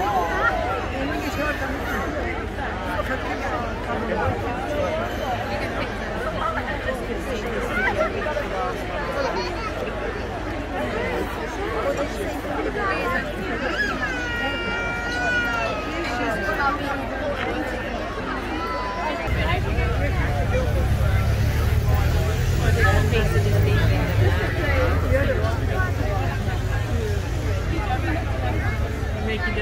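A large outdoor crowd chatters all around.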